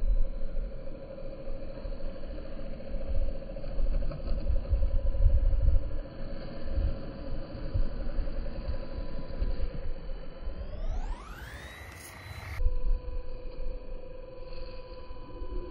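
A small electric motor whines steadily and revs up high for a moment.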